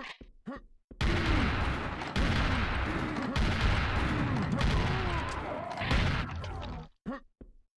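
Shotgun blasts boom again and again.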